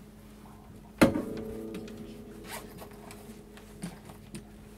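A guitar is bumped and its strings ring out, slowly fading.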